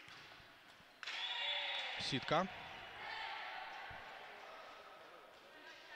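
A crowd cheers and claps in a large echoing hall.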